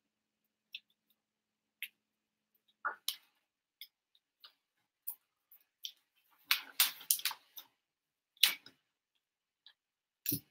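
Small plastic toy bricks click and rattle as they are sorted and snapped together.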